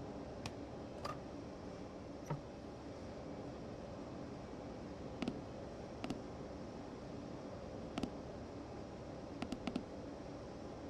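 Switches in a train cab click now and then.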